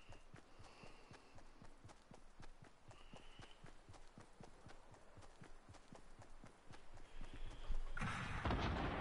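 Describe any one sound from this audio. Footsteps run quickly over grass in a steady rhythm.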